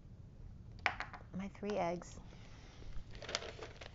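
A small stone clicks softly as it is set down on a tabletop.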